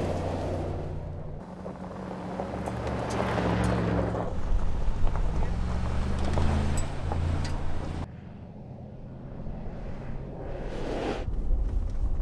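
An engine rumbles and roars.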